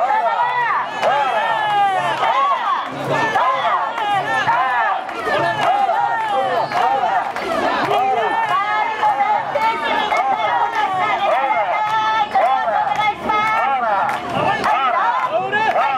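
A crowd of young women chant loudly together in rhythm, close by.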